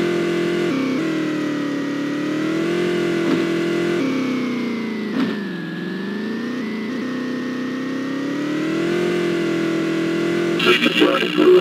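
A vehicle's engine drones steadily, rising and falling in pitch.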